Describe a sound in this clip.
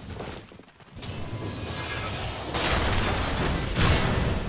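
Magic spells whoosh and crackle as fighters clash in battle.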